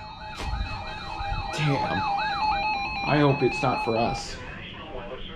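A weather radio beeps with steady, shrill alarm tones.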